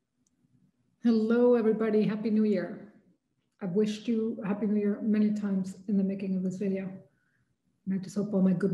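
A woman speaks calmly, heard close through an online call.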